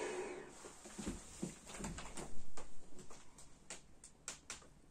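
Footsteps and small knocks sound on a wooden floor.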